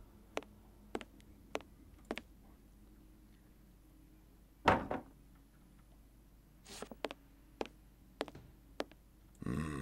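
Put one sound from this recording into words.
Soft knocks of hands gripping a wooden ledge sound at a steady pace.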